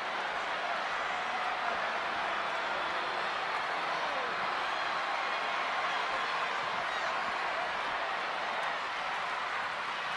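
A large crowd cheers and roars steadily in a vast open stadium.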